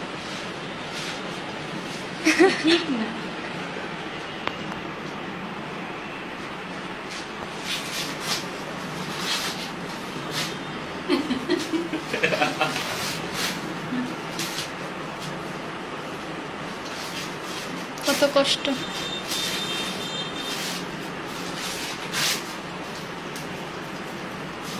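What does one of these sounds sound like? Paper rustles and crinkles as it is handled close by.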